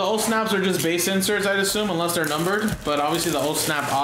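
Plastic wrap crinkles and tears as a box is unwrapped.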